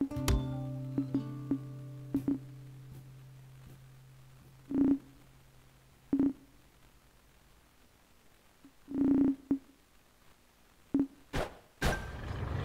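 Short electronic menu tones chime and blip now and then.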